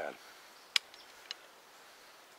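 A gun's metal parts click as a man handles a shotgun.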